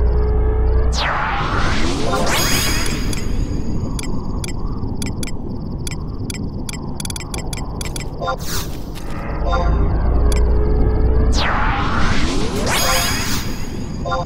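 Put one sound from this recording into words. A bright magical burst whooshes and rings out.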